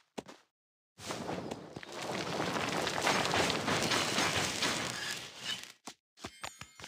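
A rushing, crackling whoosh swells and then cuts off.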